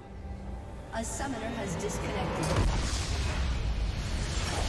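Magic spell effects whoosh and crackle in a video game.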